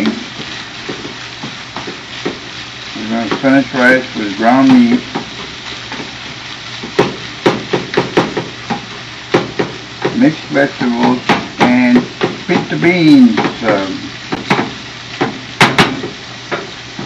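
A spatula scrapes and clacks against a frying pan.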